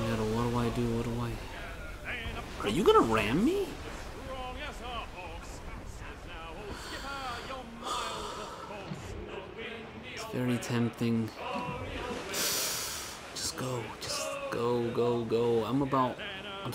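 A group of men sing a sea shanty together in chorus.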